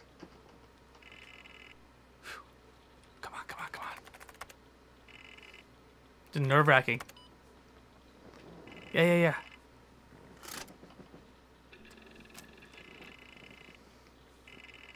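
A computer terminal beeps in short steady tones.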